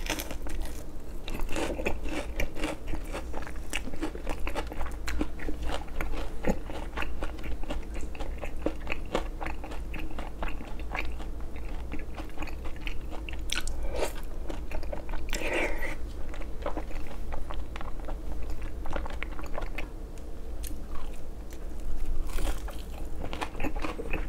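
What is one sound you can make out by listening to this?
A young man chews and slurps food loudly and close up.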